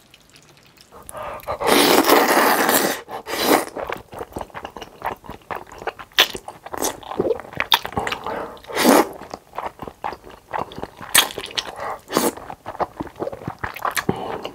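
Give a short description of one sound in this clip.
A young man loudly slurps noodles close to a microphone.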